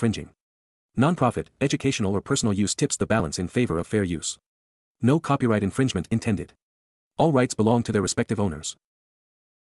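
A man reads out calmly and clearly through a microphone.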